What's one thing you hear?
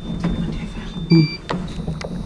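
A button clicks as it is pressed.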